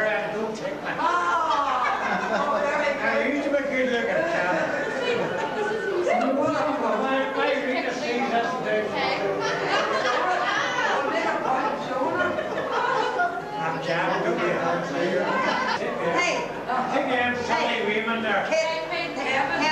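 Several people chat and laugh together.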